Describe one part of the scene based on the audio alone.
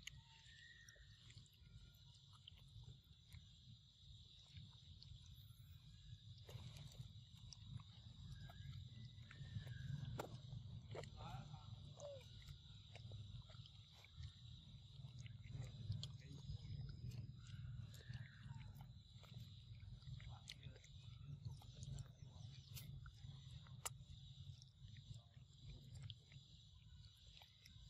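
A monkey chews soft fruit wetly close by.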